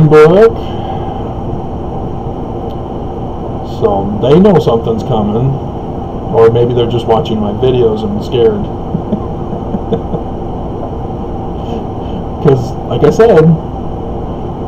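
A middle-aged man speaks close to the microphone in short bursts.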